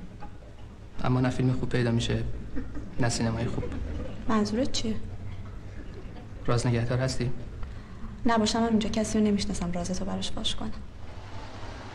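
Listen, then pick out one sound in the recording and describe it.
A young woman speaks calmly and softly nearby.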